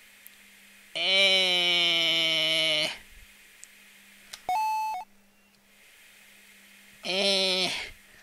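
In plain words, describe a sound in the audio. A buzzing electronic engine drones in short bursts.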